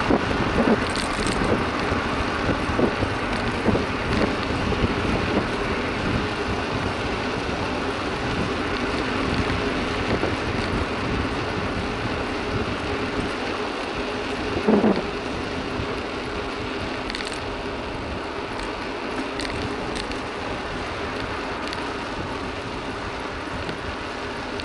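Wind rushes and buffets steadily outdoors.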